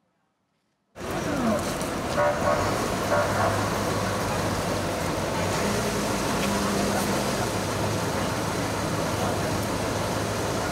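A fire engine's motor runs steadily outdoors.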